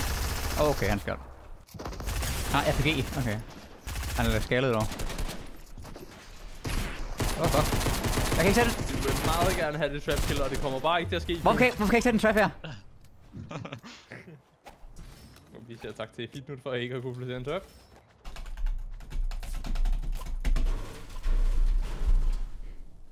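Gunshots crack.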